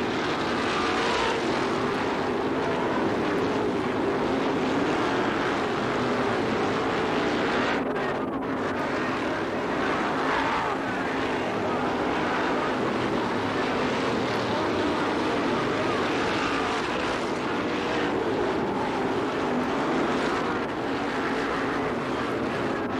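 Sprint car engines roar loudly.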